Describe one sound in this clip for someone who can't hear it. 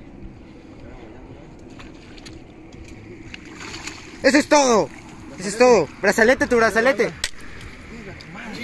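Water splashes and laps against a boat.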